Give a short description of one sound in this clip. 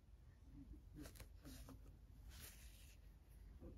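Fingers rub and squeeze soft knitted yarn.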